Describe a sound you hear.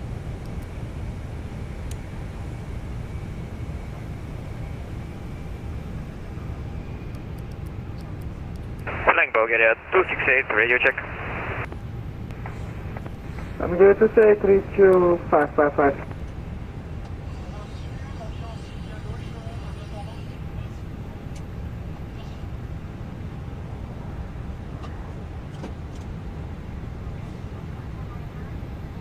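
A low, steady hum drones.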